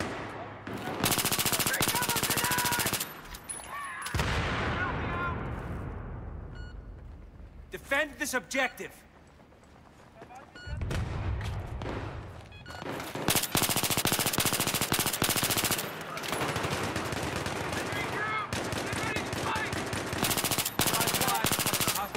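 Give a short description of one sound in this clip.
Automatic rifle fire rattles in rapid bursts.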